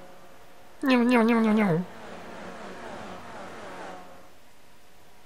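A racing car engine screams past at high revs and fades away.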